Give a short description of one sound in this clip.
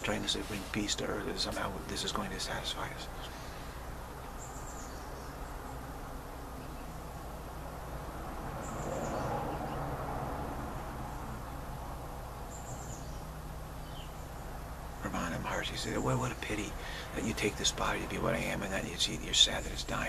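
A middle-aged man speaks calmly and close to the microphone.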